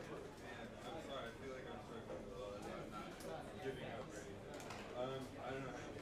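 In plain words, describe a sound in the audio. A man laughs and chats nearby.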